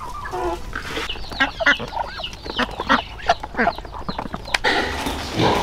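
Ducks dabble and quack while eating.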